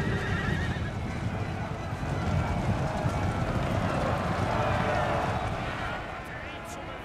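Many horses gallop in a heavy, rumbling charge.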